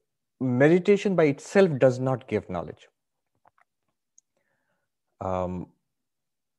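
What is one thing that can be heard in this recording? A man speaks calmly into a microphone, pausing briefly.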